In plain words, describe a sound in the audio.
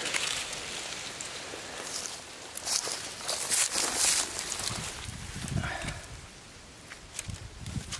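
Dry leaves rustle as hands move among them.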